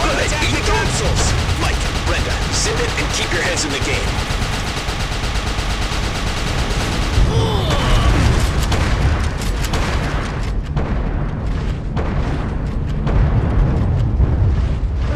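Rifle fire cracks in quick bursts.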